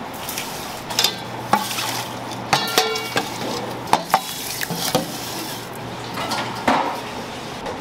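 Metal bowls clink against each other.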